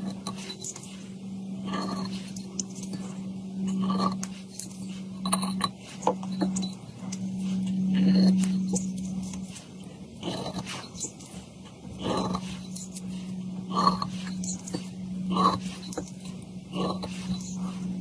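A small metal blade taps and scrapes against a hard surface.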